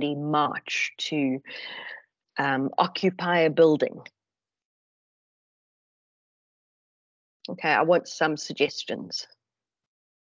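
A middle-aged woman speaks calmly through an online call.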